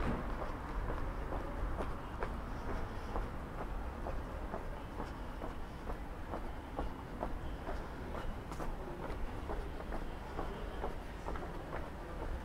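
Footsteps tap steadily on a pavement at a walking pace.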